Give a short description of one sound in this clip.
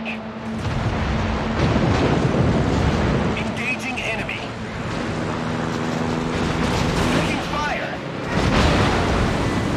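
Anti-aircraft shells burst and boom nearby.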